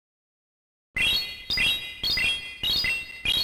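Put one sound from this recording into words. Bright video game chimes ring in quick succession.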